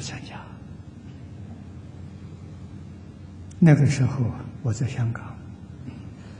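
An elderly man speaks calmly and slowly into a microphone, with pauses.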